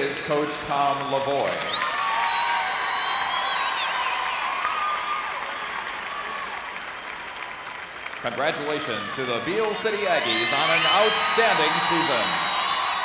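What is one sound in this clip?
A large crowd cheers and applauds in an echoing arena.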